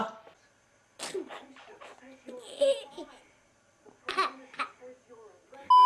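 A baby giggles and laughs loudly close by.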